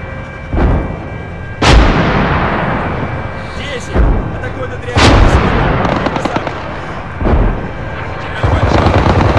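Rockets launch with a rushing roar.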